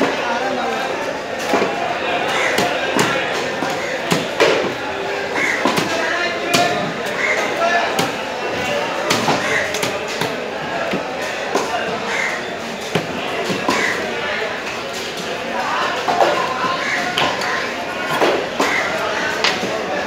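A cleaver chops into a wooden block with sharp, repeated knocks.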